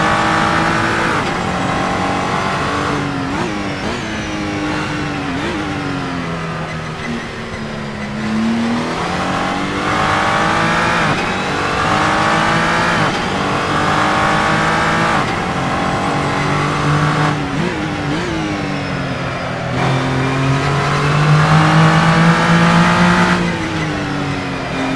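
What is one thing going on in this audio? A racing car engine roars, rising in pitch as it speeds up and dropping sharply at each gear change.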